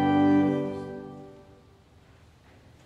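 A choir sings a long final note that fades away in a large echoing hall.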